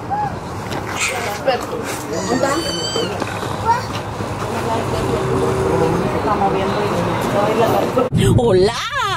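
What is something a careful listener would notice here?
A woman talks casually nearby, outdoors.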